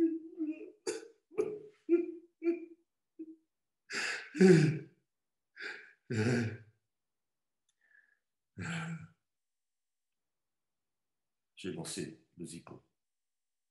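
A middle-aged man talks in short bursts with pauses, heard through an online call.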